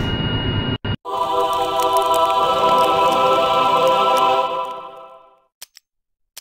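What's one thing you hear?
A short musical chord rings out and fades.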